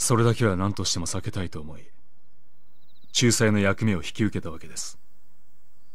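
A man speaks calmly and politely.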